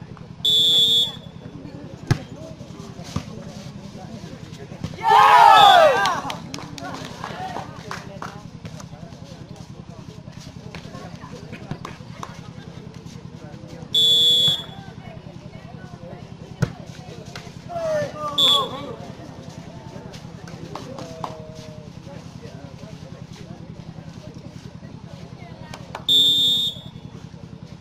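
A referee's whistle blows short, shrill blasts.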